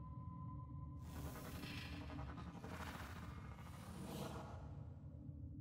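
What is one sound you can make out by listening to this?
A mechanical arm whirs and hisses as it moves.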